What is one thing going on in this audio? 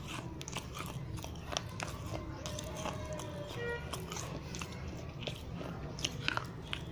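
Wet mouth clicks and smacks sound right up close.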